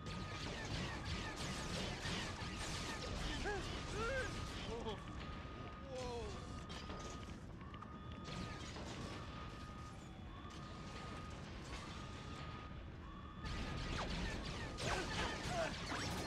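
Blasters fire in rapid bursts.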